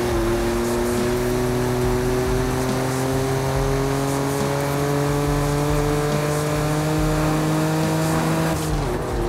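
A car engine hums steadily, its pitch slowly rising as it speeds up.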